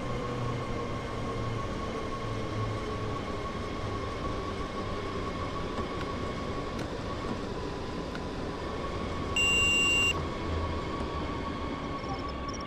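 An electric train hums steadily as it rolls along the rails and slows down.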